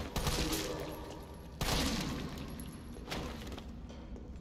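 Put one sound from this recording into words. A submachine gun fires in bursts.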